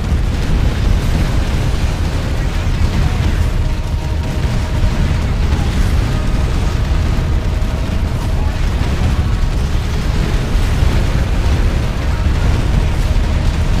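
Explosions rumble and boom continuously.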